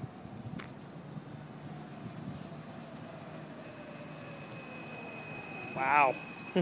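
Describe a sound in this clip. A bicycle rolls up on a road outdoors.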